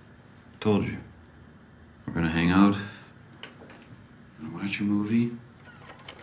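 A young man speaks in short bursts nearby.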